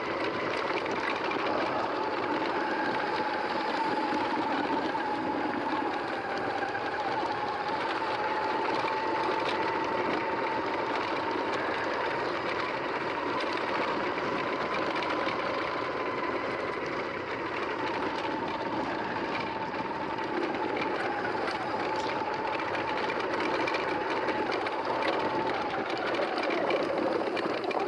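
Bicycle tyres roll and crunch over a dry dirt track.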